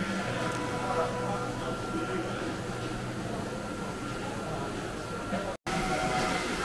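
Kitchen equipment hums steadily.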